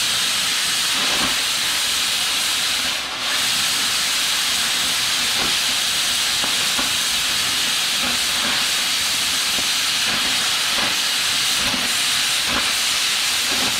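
Sparks crackle and spatter onto metal.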